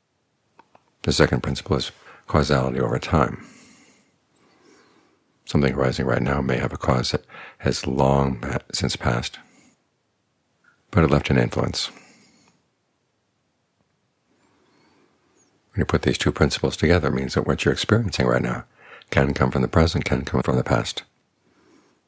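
An elderly man speaks calmly and slowly into a close microphone, with pauses.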